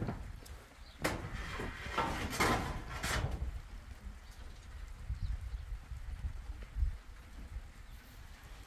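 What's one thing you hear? A tool bangs and scrapes on a metal roof sheet.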